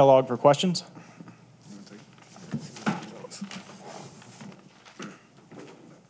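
Paper rustles on a table.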